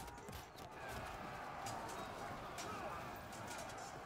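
Soldiers shout a battle cry.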